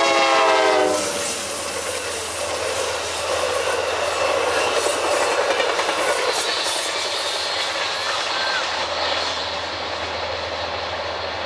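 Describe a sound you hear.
Steel wheels clatter and squeal on the rails as passenger cars roll past.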